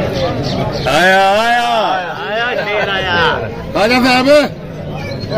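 A man calls out loudly with a raised, sing-song voice.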